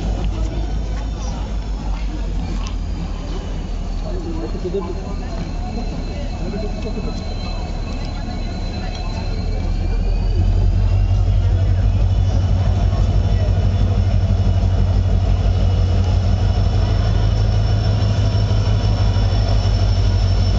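A diesel locomotive rumbles as it approaches, growing louder.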